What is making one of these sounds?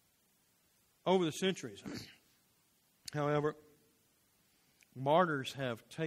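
A middle-aged man speaks slowly and calmly through a microphone in an echoing room, with pauses between phrases.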